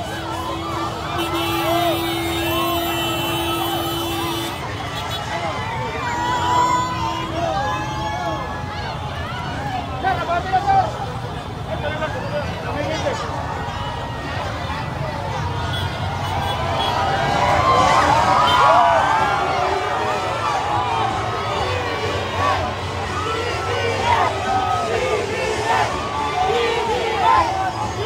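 A large crowd outdoors cheers and shouts loudly all around.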